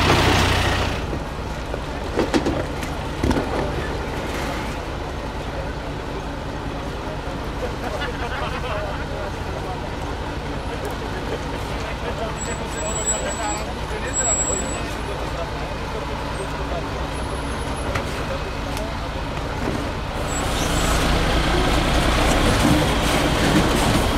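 A diesel truck engine rumbles at low revs as the truck crawls down a rocky slope.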